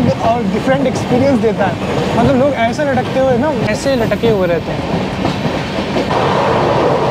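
A train rattles steadily along the tracks.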